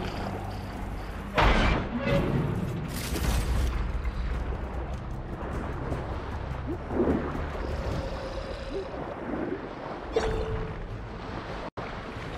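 A muffled underwater rumble drones steadily.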